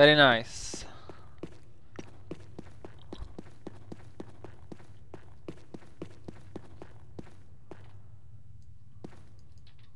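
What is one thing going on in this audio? Footsteps tap steadily on stone in an echoing passage.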